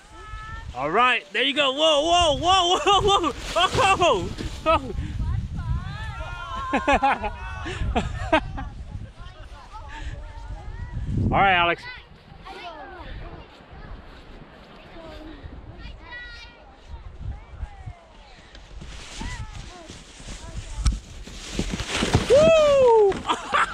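A plastic sled hisses and scrapes as it slides over snow.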